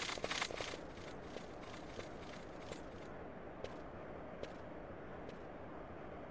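Footsteps tap on a stone floor in a large echoing hall.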